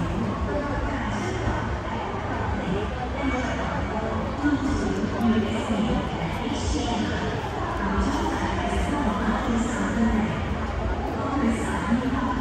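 A crowd chatters in a large, busy hall.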